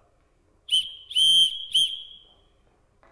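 A whistle blows three sharp blasts.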